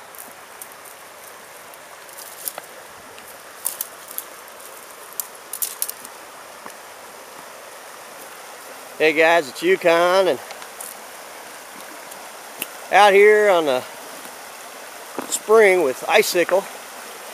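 Small footsteps crunch and clatter on loose flat stones.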